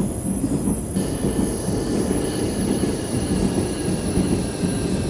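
A train's electric motor whines steadily.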